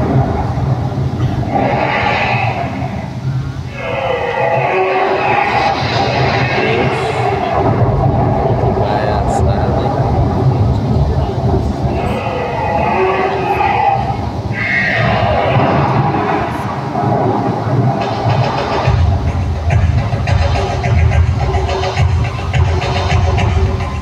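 A fountain show rumbles loudly and deeply.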